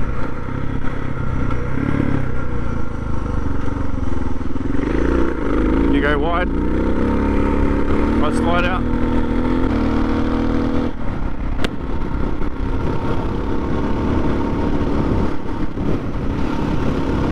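Tyres crunch on a gravel road.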